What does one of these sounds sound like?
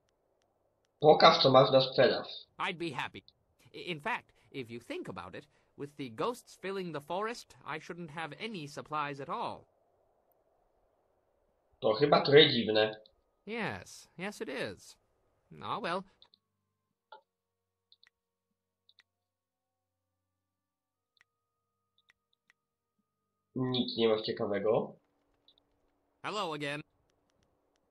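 A young man talks calmly close to a microphone.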